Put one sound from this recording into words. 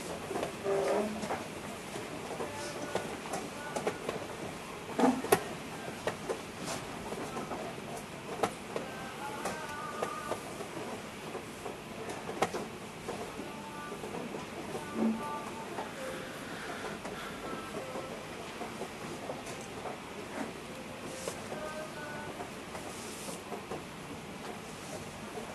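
People chat quietly in the background.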